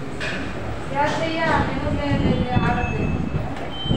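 A woman speaks loudly close by.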